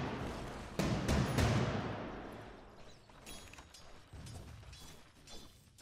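Magic blasts and weapon strikes crash in a game battle.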